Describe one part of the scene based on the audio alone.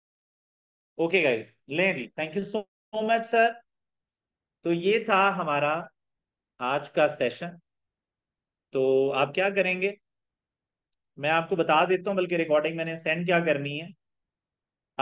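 A young man speaks calmly into a close microphone, explaining in short phrases.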